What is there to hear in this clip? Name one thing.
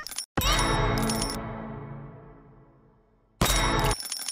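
A deep booming game sound rings out and slowly fades.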